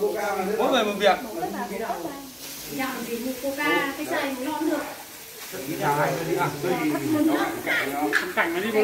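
Bean sprouts rustle in a plastic basket as a man's hands sift them.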